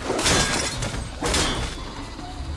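Sparks crackle and burst in a loud explosion.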